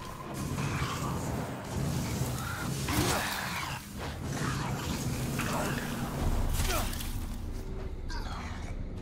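A flamethrower roars loudly, blasting bursts of fire.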